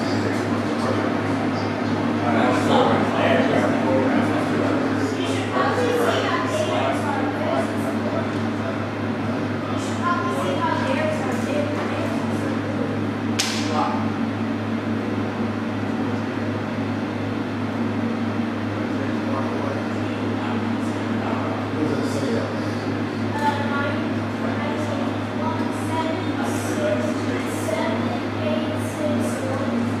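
Computer fans hum steadily.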